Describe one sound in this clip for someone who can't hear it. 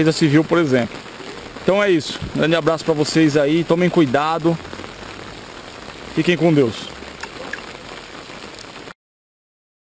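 Rain patters steadily on an umbrella overhead.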